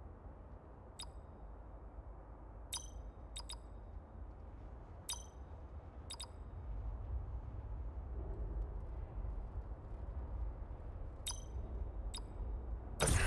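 Keypad buttons beep one at a time.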